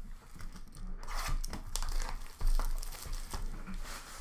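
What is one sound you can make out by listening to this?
Foil card wrappers rustle and crinkle close by.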